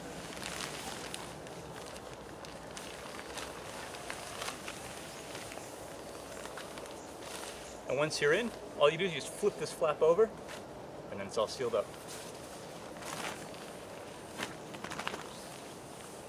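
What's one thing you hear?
Tent fabric rustles and flaps.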